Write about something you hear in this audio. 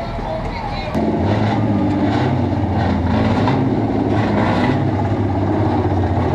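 A car engine rumbles and revs as the car drives past.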